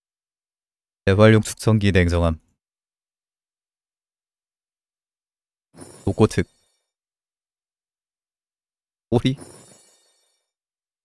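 A young man speaks with animation in short bursts, close to a microphone.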